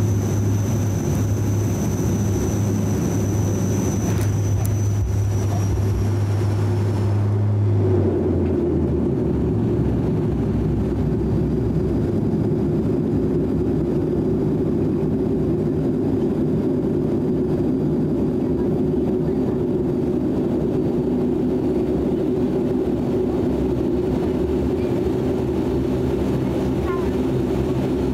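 Jet engines roar loudly inside an airplane cabin as it rolls along a runway.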